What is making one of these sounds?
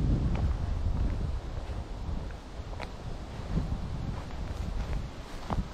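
Wind blows outdoors, gusting in low rumbles.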